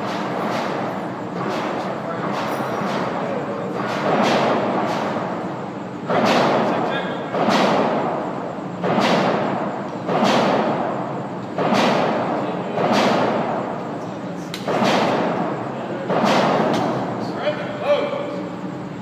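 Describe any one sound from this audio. A machine gun fires loud short bursts that boom and echo around a large hard room.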